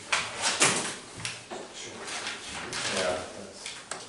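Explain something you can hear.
Paper sheets rustle as a man turns them.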